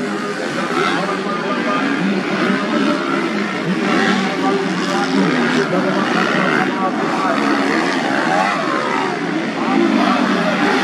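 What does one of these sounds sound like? Motorcycle engines rev and roar as dirt bikes race over a bumpy track.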